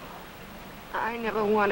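A young woman speaks anxiously.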